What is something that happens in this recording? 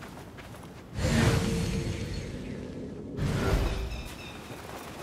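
Loose sand rushes and hisses in bursts.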